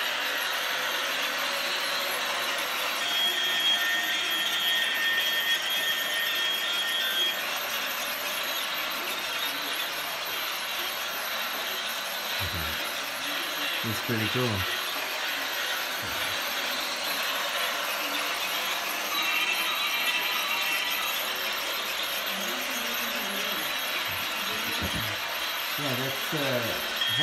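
A toy train rattles and clicks steadily around its track.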